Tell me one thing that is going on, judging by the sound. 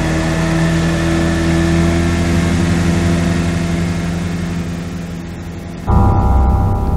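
A helicopter engine drones steadily.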